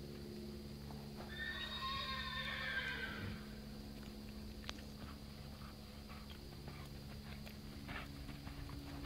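A horse's hooves thud softly on soft dirt as it trots.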